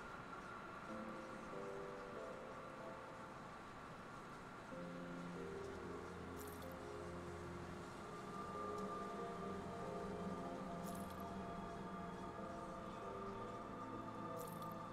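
Calm game music plays steadily with soft melodic notes.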